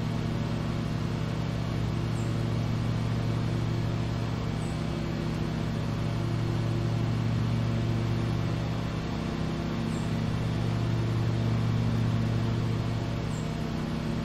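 A lawn mower engine hums steadily while cutting grass.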